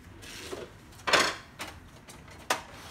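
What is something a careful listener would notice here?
A plastic printer tray clunks and clicks as someone handles it.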